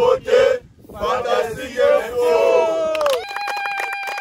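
A group of men sing and shout together outdoors.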